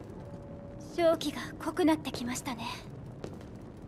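A young woman speaks quietly, with echo.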